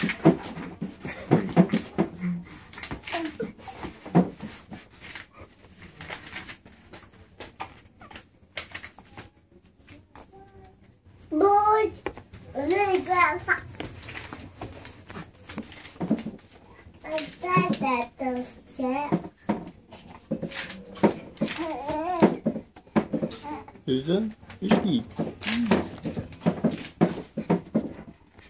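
Paper crinkles under a baby's wriggling.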